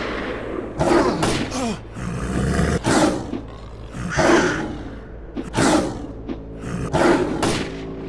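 A knife slashes and stabs into flesh.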